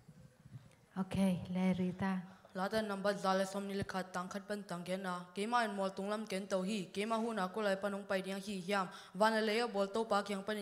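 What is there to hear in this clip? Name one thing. A boy sings loudly through a microphone in long, held notes.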